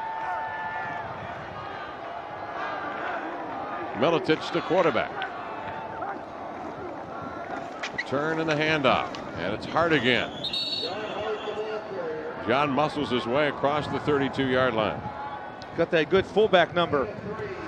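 A large stadium crowd roars and cheers outdoors.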